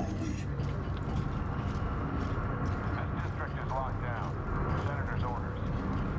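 Heavy boots clank on metal stairs.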